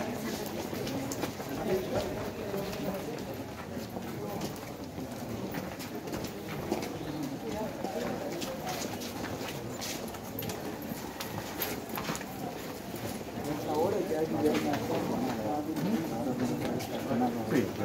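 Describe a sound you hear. Footsteps scuff on a hard floor as people walk.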